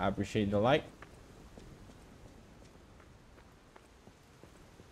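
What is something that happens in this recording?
Footsteps run quickly over stone and dirt.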